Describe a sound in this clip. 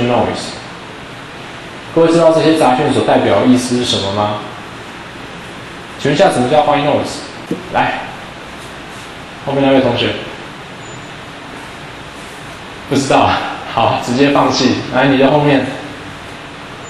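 A man speaks calmly through a microphone in bursts, with pauses between.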